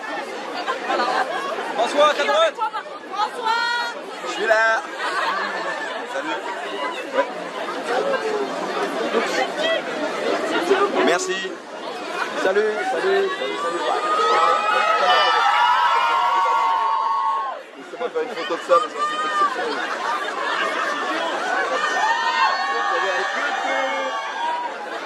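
Young women shout and squeal excitedly close by.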